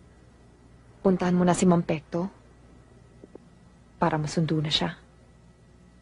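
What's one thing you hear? A young woman speaks softly and tearfully, close by.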